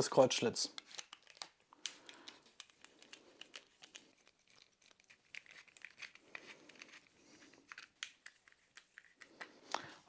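Small plastic parts click and snap as they are handled.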